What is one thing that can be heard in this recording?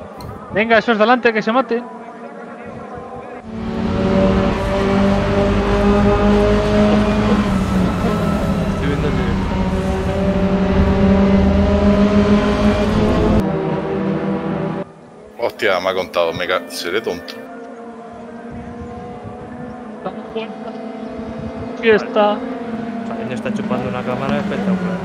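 Several race car engines drone as cars drive past.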